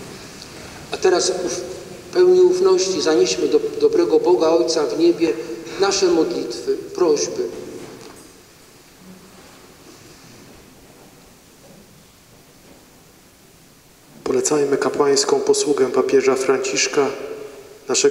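A young man reads aloud into a microphone in a large echoing hall.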